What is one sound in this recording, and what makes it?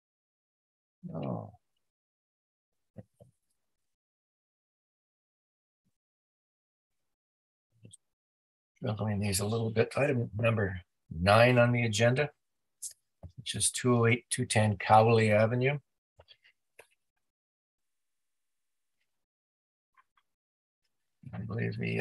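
An adult man speaks calmly over an online call.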